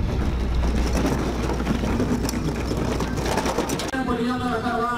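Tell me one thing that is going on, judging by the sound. Hard wheels of a heavy case rumble and scrape along a metal ramp.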